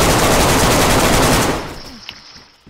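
A rifle fires a rapid burst of loud shots that echo.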